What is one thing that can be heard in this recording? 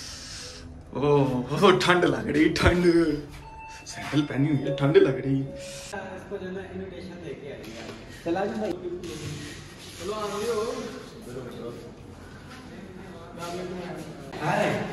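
A young man talks calmly nearby in a room.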